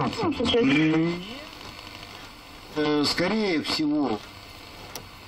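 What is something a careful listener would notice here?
An old radio whistles and warbles loudly as it is tuned between stations.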